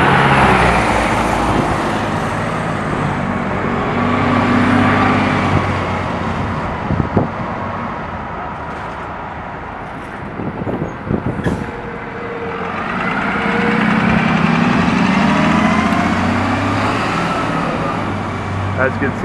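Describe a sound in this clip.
A bus engine rumbles as the bus drives past and pulls away.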